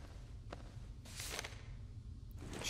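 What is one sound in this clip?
A sheet of paper rustles as it is picked up.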